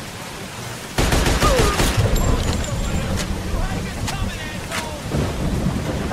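A submachine gun fires rapid bursts of gunshots.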